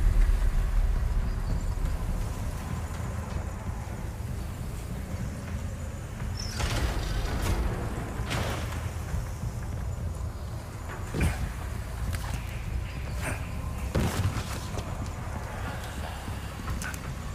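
Footsteps run quickly across hard floors.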